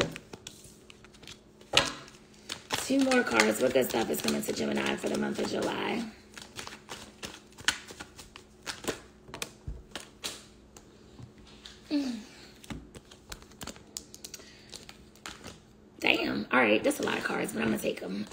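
Cards flick and click as they are shuffled in hand.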